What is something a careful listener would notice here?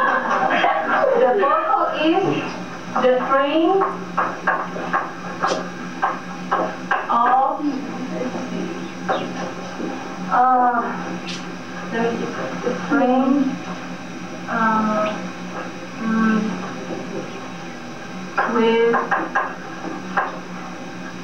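A woman speaks with animation.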